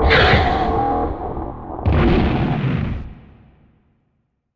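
A monster lets out a low, rough cry and fades away.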